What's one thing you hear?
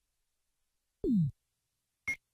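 A low electronic whoosh sweeps downward.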